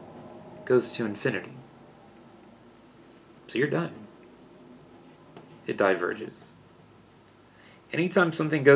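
A man speaks calmly and closely into a microphone, in short phrases.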